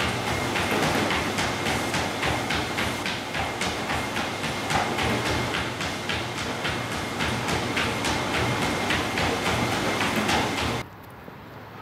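A treadmill motor whirs steadily.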